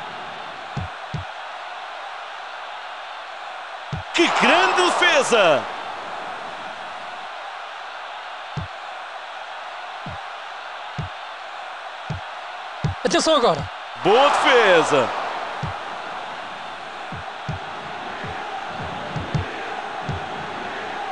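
A football is kicked with short dull thuds, again and again.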